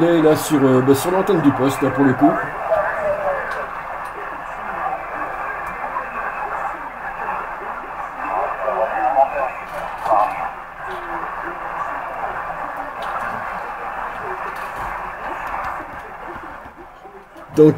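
Radio static hisses and crackles from a shortwave receiver.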